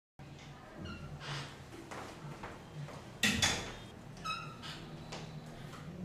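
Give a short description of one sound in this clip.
A door opens and closes.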